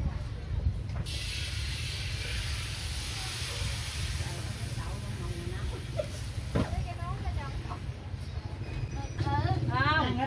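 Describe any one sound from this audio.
Batter sizzles as it is poured into a hot wok.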